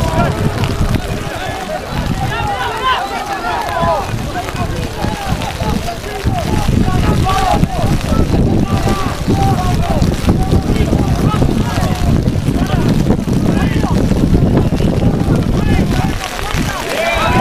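Young men shout and call out to each other outdoors on an open field.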